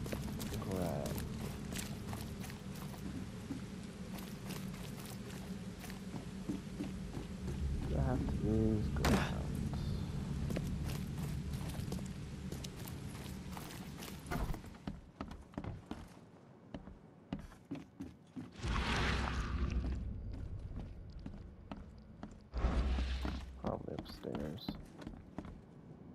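Footsteps tread steadily on wooden boards and ground.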